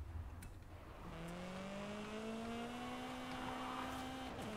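A car engine hums and rises steadily in pitch as the car speeds up.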